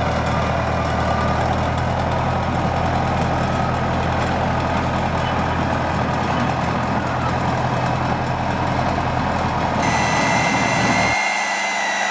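A small locomotive engine rumbles steadily as a train rolls slowly along the track.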